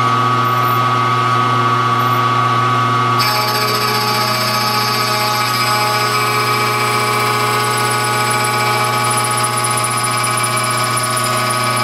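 A milling machine motor hums steadily.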